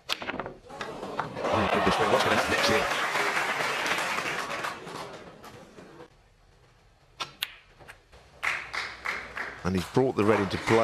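Snooker balls knock together on the table.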